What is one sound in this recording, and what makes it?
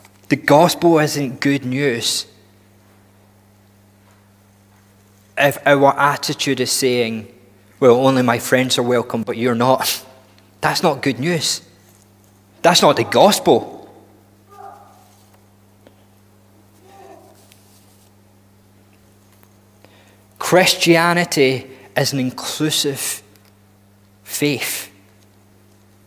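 A man speaks calmly into a microphone, pausing often.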